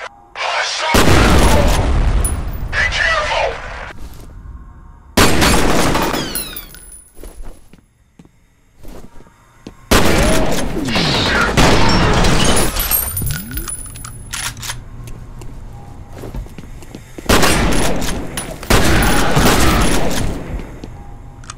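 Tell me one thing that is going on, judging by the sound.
An automatic rifle fires loud, rapid bursts in an echoing space.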